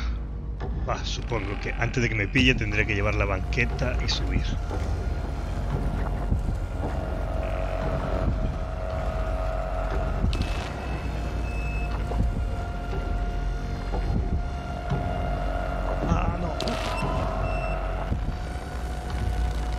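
Eerie music plays with low droning tones.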